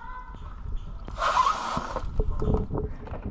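Gas hisses into a plastic bag.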